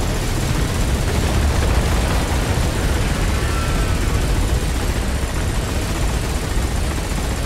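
A rapid-fire gun shoots continuously.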